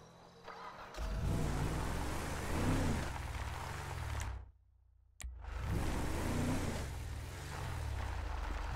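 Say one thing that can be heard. A truck engine revs loudly as it pulls away and drives on.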